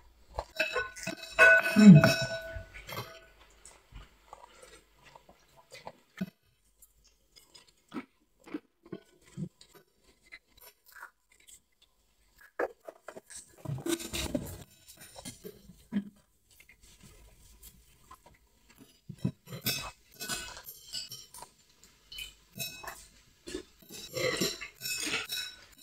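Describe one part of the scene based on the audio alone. Chopsticks and spoons clink against bowls.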